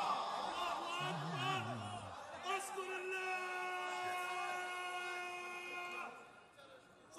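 A man sings loudly through a microphone, holding a long note.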